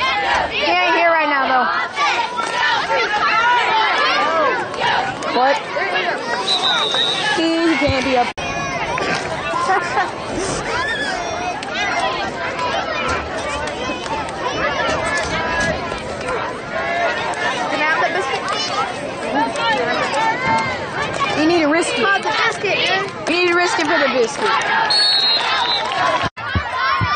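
A crowd of men and women shouts and cheers nearby, outdoors.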